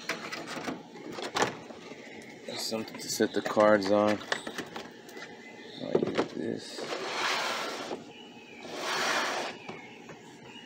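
A cardboard box scrapes and thumps as it is handled and set down.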